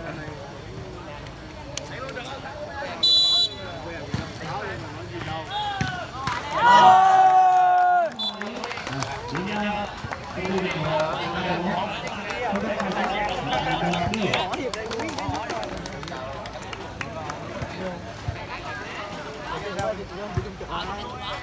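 A crowd of young men and women chatter and shout outdoors.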